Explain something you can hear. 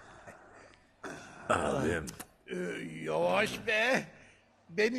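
An elderly man speaks with emotion, close by.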